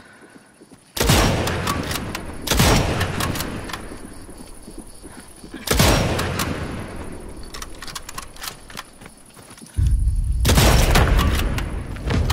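A rifle fires loud, booming shots that echo away.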